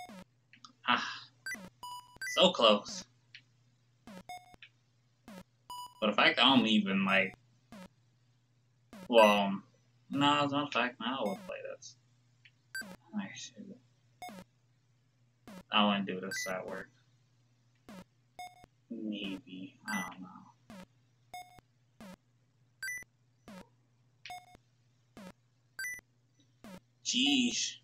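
Short electronic beeps from a retro video game bounce at a quick, uneven pace.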